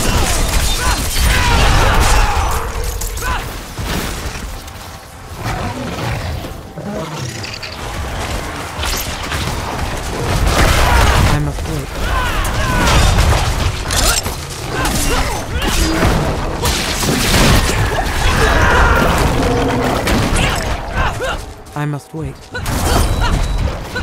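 Weapons slash and thud against monsters.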